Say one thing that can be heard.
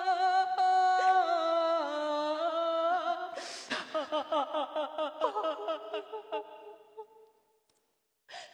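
A woman sings in a high, drawn-out voice.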